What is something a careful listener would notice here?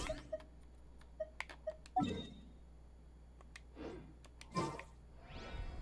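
Soft menu clicks tick and chime.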